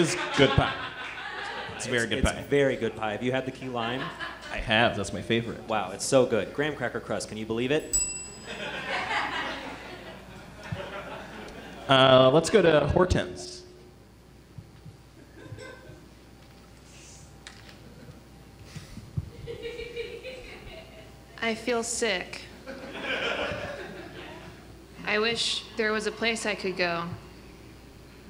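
Young adults speak lines with animation, heard from a distance in a hall.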